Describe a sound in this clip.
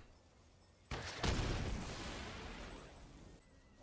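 A burst of fire whooshes and crackles.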